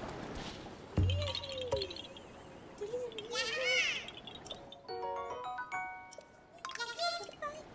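A bright, chiming tune plays with short rising notes.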